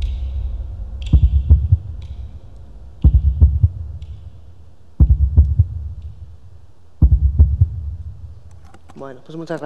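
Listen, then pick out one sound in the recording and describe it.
Deep, booming music beats play through loudspeakers.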